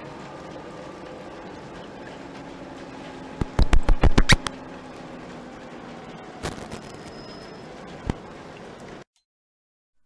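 Rain patters steadily on a bus windscreen.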